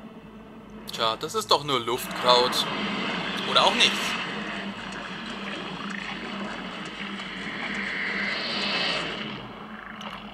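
A large sea creature growls and roars up close.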